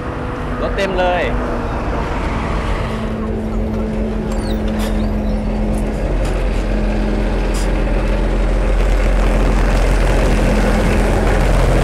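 Bus engines idle and rumble close by.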